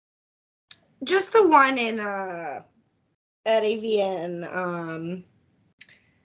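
A woman speaks with drawn-out, animated words over an online call.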